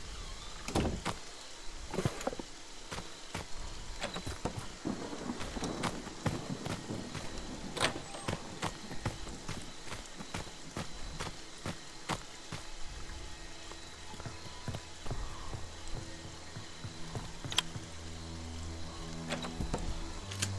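Footsteps knock on a wooden floor.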